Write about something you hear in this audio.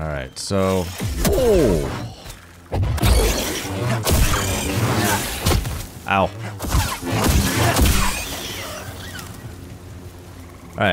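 A lightsaber hums and clashes in a fight.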